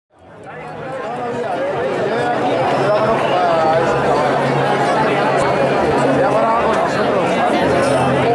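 A rock band plays live outdoors, fading in.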